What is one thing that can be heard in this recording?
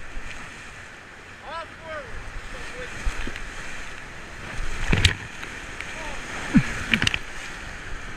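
Paddles splash into the water.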